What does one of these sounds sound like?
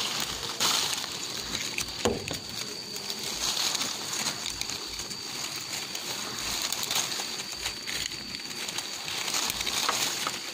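Leaves rustle as a hand brushes through a fruit-laden branch.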